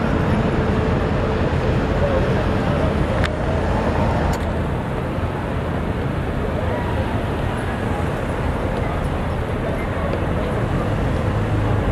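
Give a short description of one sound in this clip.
City traffic rumbles steadily along a street outdoors.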